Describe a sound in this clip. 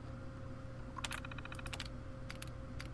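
A computer terminal gives quick electronic clicks and chirps.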